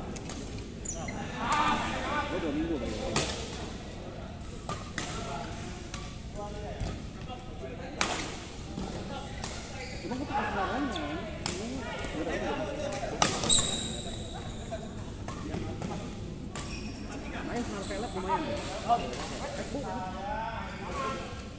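Men call out to each other during play, echoing in a large hall.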